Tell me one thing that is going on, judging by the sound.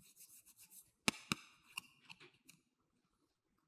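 Small plastic toys click and clatter on a table.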